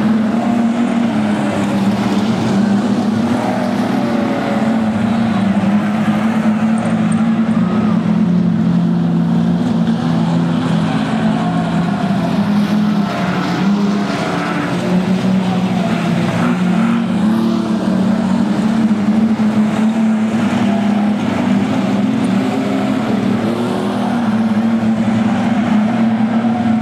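Car engines rev up and down.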